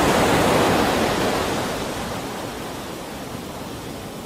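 Water splashes behind a moving boat.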